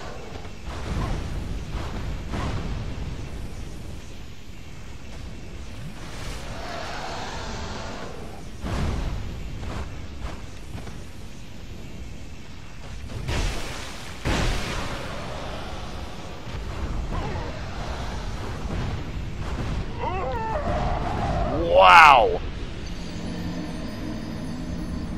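Fire bursts roar in loud blasts.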